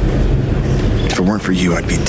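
A young man speaks quietly and seriously.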